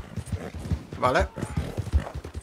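A horse whinnies briefly.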